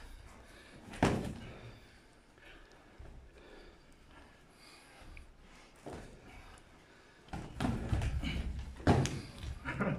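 Gloved punches thud against padded armour.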